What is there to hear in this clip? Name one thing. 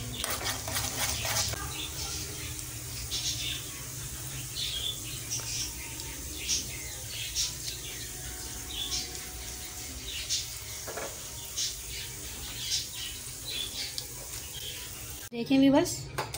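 Food sizzles and crackles in hot oil in a pan.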